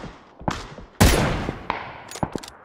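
A rifle shot cracks loudly with a rolling echo.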